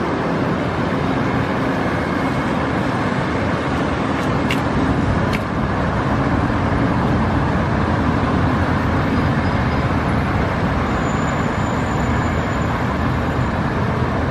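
Traffic rumbles steadily along a busy street.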